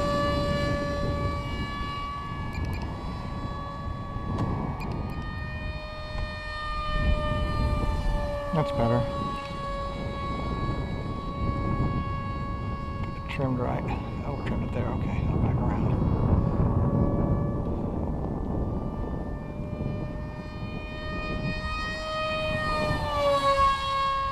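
A model jet's turbine whines steadily overhead, rising in pitch as it sweeps in close.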